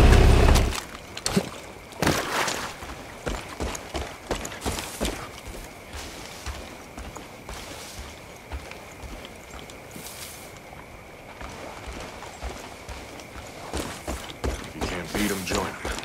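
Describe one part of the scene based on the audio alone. Footsteps crunch on a forest path.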